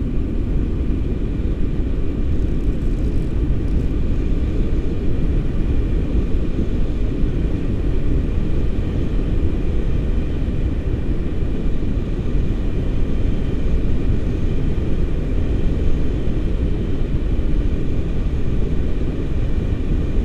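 Strong wind roars and buffets against a microphone throughout.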